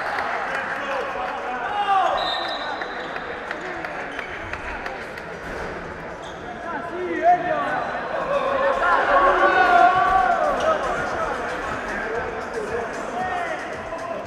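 Men shout and call out across a large echoing gym.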